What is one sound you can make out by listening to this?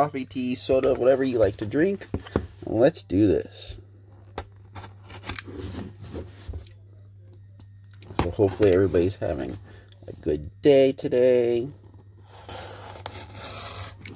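A cardboard box scrapes and taps as a hand turns it over.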